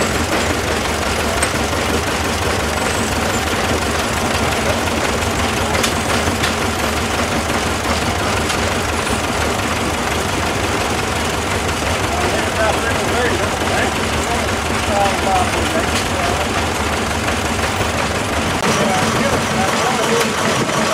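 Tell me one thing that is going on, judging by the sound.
An old stationary engine chugs and clanks steadily outdoors.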